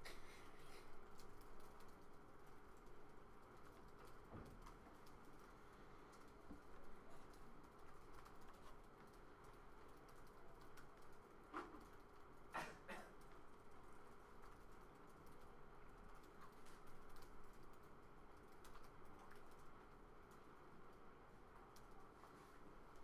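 A man types softly on a laptop keyboard.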